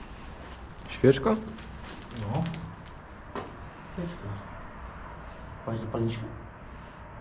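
A young man talks quietly nearby.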